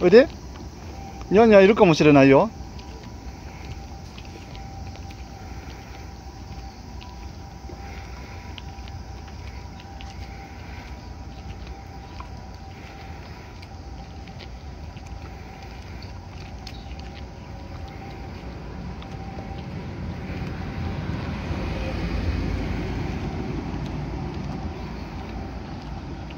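Small footsteps patter on pavement outdoors.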